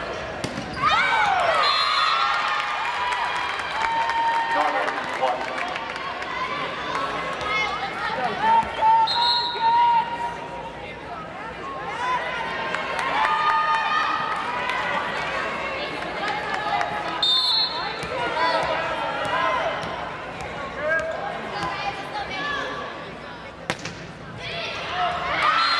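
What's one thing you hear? Young women players shout and call out to each other.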